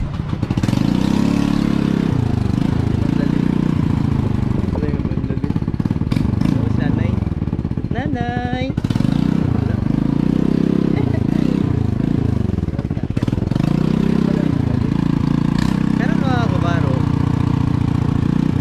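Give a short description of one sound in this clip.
A motorcycle engine hums steadily at low speed.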